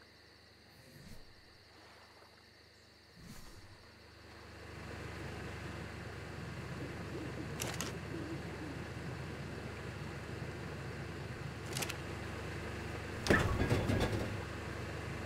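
Short clicks sound as a game menu opens and closes.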